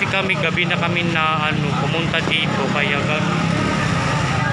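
A man talks close to the microphone with animation.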